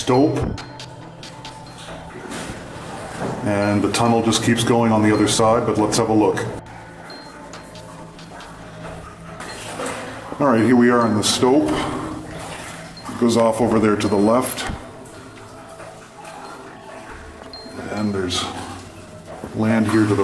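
A man speaks calmly nearby in an echoing tunnel.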